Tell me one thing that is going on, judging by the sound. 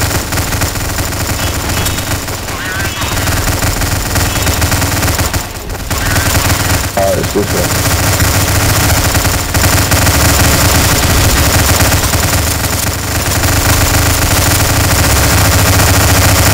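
Automatic gunfire rattles rapidly and continuously.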